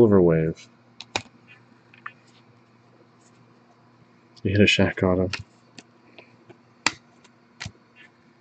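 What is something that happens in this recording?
Trading cards click and rustle as hands shuffle them.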